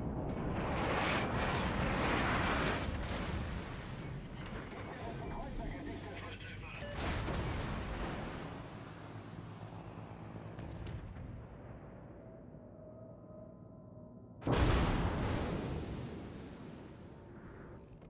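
Heavy naval guns fire with deep, rumbling booms.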